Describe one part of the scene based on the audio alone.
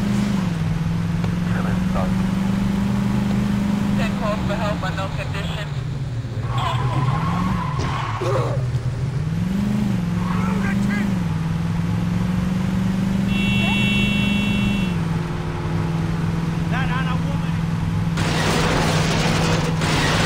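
A car engine drones at speed.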